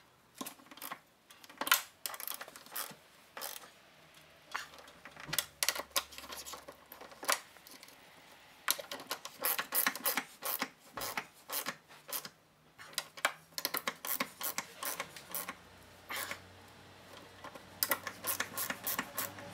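Metal tools clink against a car door.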